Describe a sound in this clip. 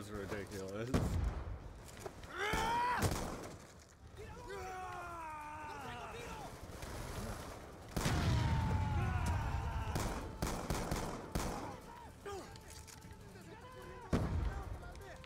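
Gunshots fire in short, loud bursts.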